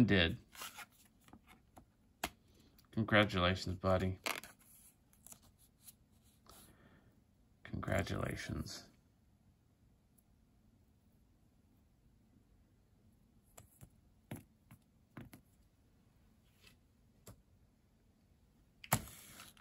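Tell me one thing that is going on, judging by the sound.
Trading cards rustle and slide softly between fingers.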